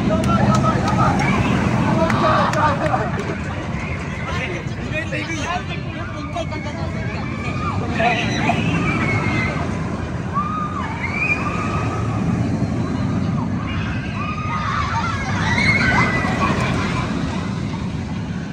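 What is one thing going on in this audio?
Riders scream on a roller coaster.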